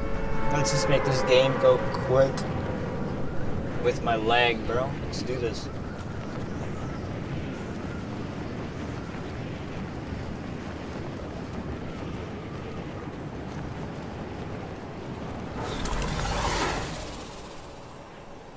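Wind rushes steadily past during a fast fall.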